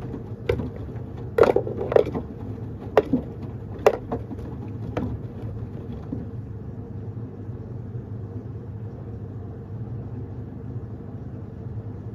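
A washing machine hums steadily.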